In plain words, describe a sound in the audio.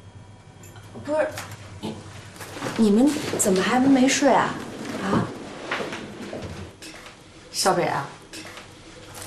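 A young woman speaks nearby in a surprised tone.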